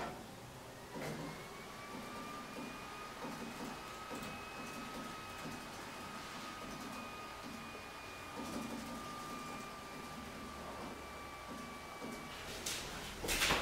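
A computer lets out a long, steady beep.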